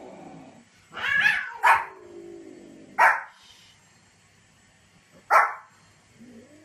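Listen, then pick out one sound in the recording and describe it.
A small dog barks sharply several times.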